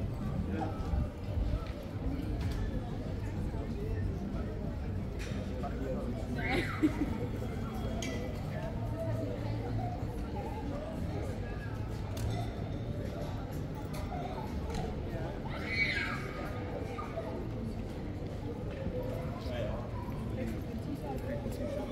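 Distant voices of passers-by murmur outdoors in a busy street.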